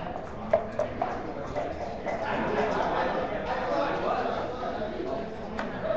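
Plastic checkers click against each other as a hand moves them across a board.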